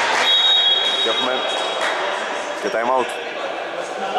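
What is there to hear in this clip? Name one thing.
Young men shout to each other in a large echoing gym.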